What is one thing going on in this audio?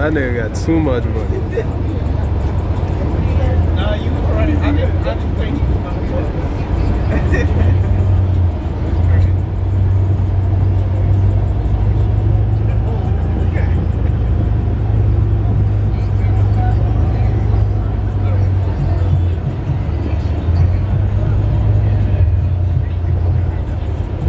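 A vehicle's engine rumbles low and steady as it drives along.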